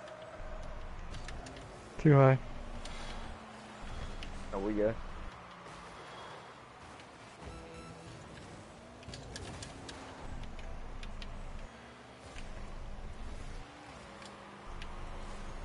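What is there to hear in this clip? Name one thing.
A car engine hums and boosts.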